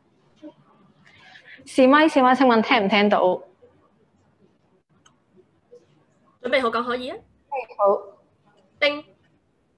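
A young girl speaks into a microphone over an online call, with a lively, sing-song voice.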